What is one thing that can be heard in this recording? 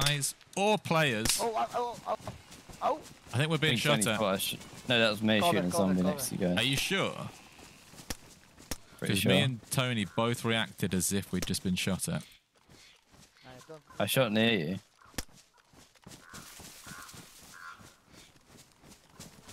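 Footsteps rustle through grass and brush.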